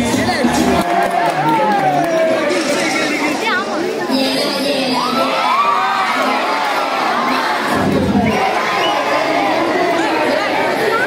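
A large crowd of young people cheers and shouts loudly outdoors.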